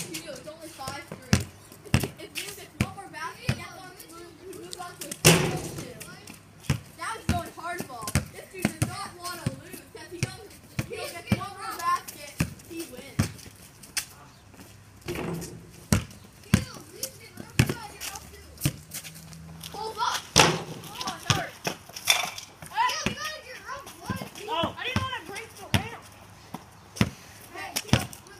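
A basketball bounces repeatedly on concrete outdoors.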